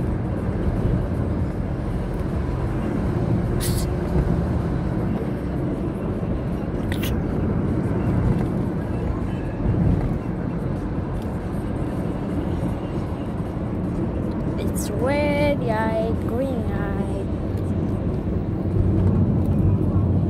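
A car rumbles steadily along the road, heard from inside.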